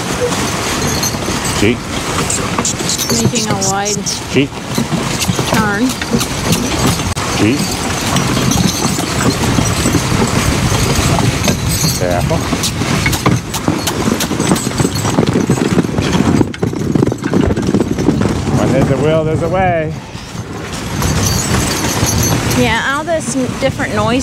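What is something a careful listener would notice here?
Sled runners hiss and scrape over snow.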